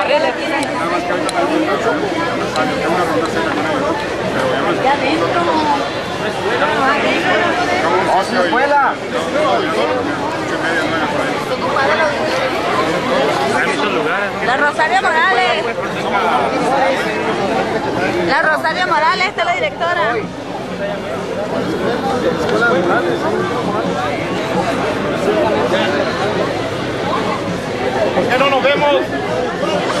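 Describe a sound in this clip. A crowd of men chatter loudly all around, close by, in a large echoing hall.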